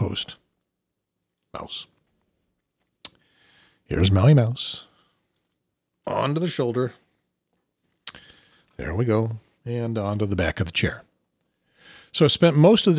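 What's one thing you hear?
A middle-aged man talks calmly and close into a microphone, in short bursts with pauses.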